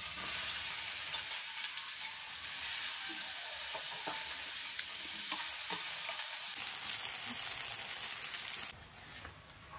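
Vegetables sizzle loudly in a hot pan.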